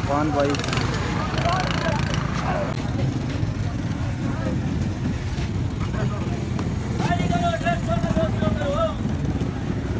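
A crowd of men chatter and call out nearby in the open air.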